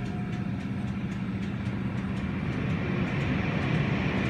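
Car wash brushes whirl and slap against a car.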